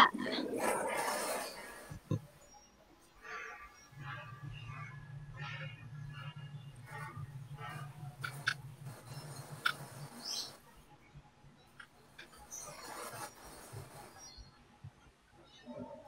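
A young woman speaks softly through an online call.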